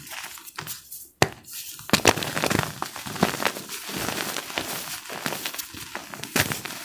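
Hands squeeze and crumble soft powder with a dry, crunchy rustle.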